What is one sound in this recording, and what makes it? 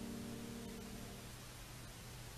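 A piano plays a sustained chord.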